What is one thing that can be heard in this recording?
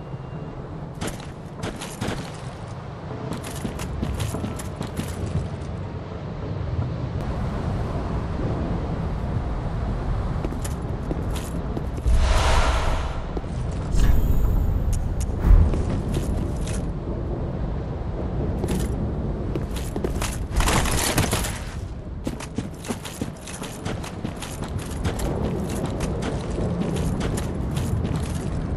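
Footsteps patter quickly on wood and stone.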